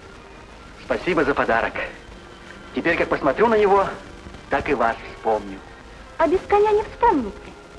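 A young woman answers softly.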